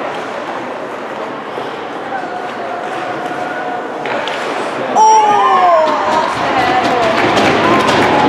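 A crowd of spectators chatters in a large echoing arena.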